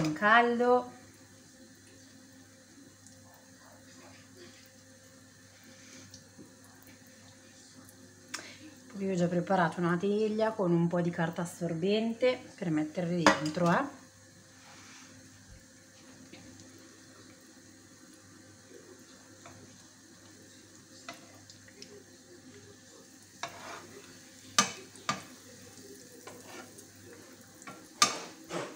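Oil sizzles and crackles softly in a frying pan.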